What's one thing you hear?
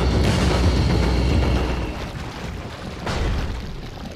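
A heavy wooden door creaks and scrapes open.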